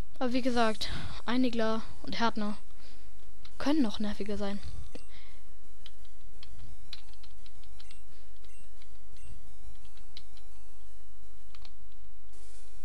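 Chiptune video game music plays with short beeping tones.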